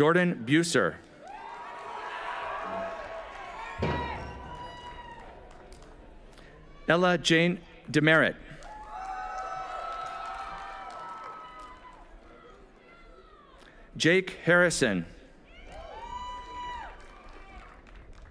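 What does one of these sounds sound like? A crowd cheers and claps.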